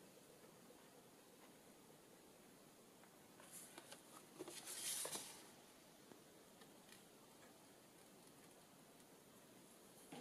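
Small scissors snip through paper.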